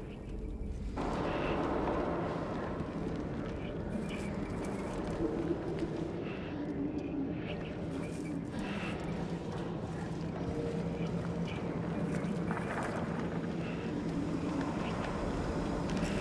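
Footsteps shuffle slowly on a hard floor.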